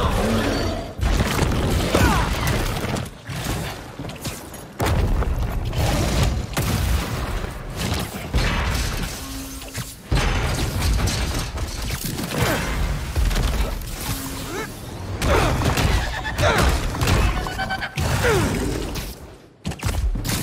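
A giant lizard creature roars and growls.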